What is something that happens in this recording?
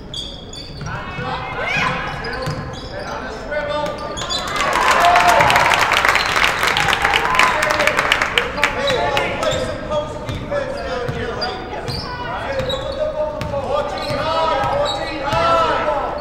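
Spectators shout and call out from the stands.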